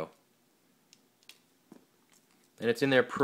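A small device clicks and taps softly as hands handle its parts.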